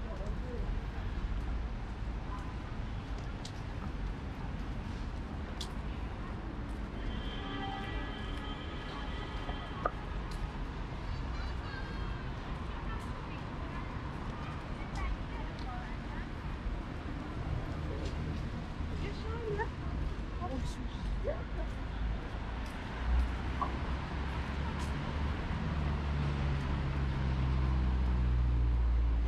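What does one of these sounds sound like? Men and women passing by murmur nearby outdoors.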